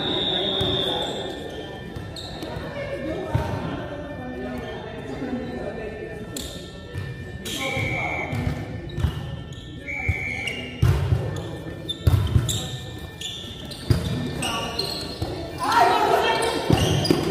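Several young men call out and shout during play.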